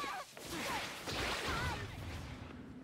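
A whip-like lash snaps through the air.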